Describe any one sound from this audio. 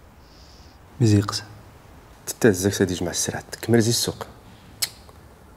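A second man answers in a calm, deep voice.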